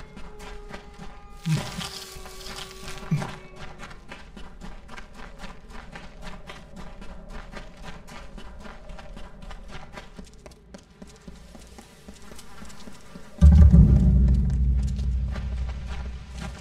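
Footsteps run quickly over dirt.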